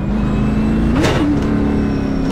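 A race car engine revs up sharply during a gear change.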